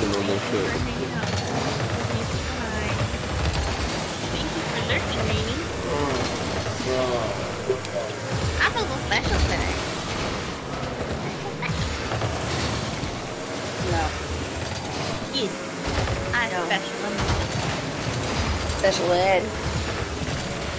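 Game cars' engines whine and boost.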